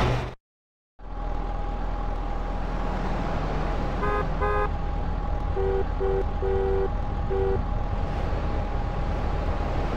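Cars drive past on a road.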